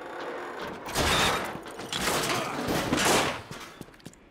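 A metal vent grate creaks and is wrenched loose with a loud clatter.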